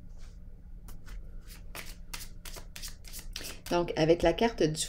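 Playing cards rustle and flick as hands shuffle them.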